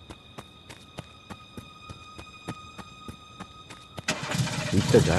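Heavy footsteps tread slowly over the ground.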